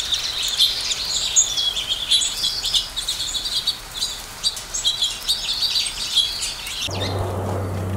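Small birds chirp and twitter rapidly.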